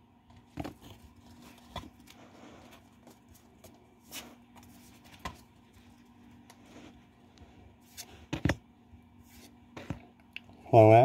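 Trading cards rustle and slap softly as hands handle them.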